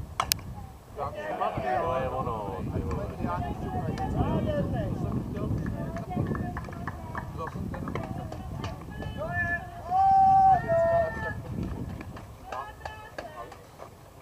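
Players shout and cheer with excitement across an open field.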